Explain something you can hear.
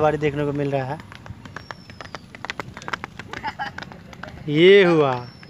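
Horse hooves clop on a paved road.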